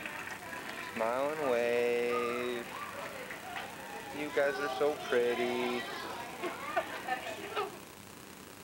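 Young girls chatter and laugh nearby.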